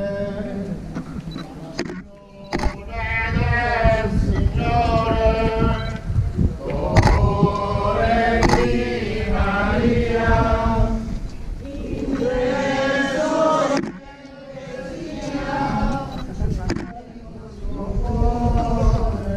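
A group of men sing a slow, mournful chant outdoors.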